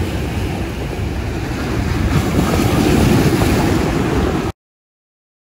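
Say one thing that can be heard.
Waves crash and splash against rocks.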